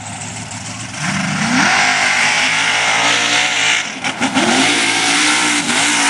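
A truck engine revs hard as the truck lurches forward.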